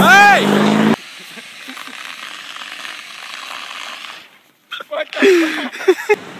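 A fire extinguisher hisses as it sprays.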